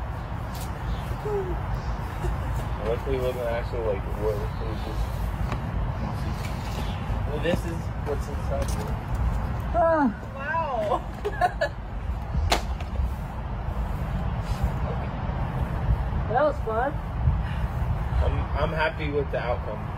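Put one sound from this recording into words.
Young men talk and laugh with animation close by, outdoors.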